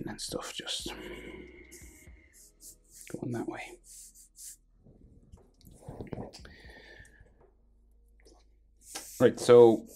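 A felt-tip marker squeaks and scratches on paper.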